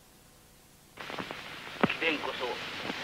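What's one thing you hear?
A man speaks sharply nearby.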